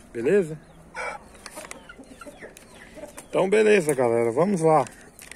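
Hens cluck softly.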